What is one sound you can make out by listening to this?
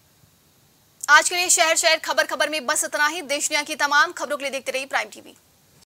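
A young woman speaks clearly and steadily into a microphone.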